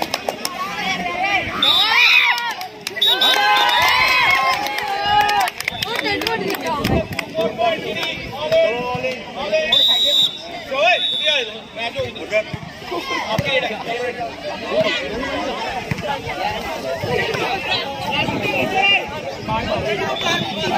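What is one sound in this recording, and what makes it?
A crowd of boys shouts and cheers loudly outdoors.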